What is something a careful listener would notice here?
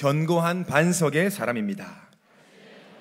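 A young man speaks calmly into a microphone in a large hall.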